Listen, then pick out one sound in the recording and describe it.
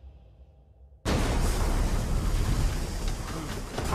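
A truck crashes and tumbles with a heavy crunch.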